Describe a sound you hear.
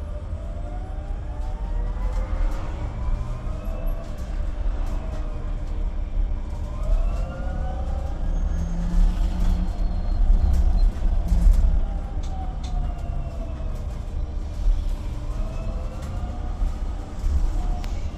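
Loose fittings rattle and click as the bus rolls over the road.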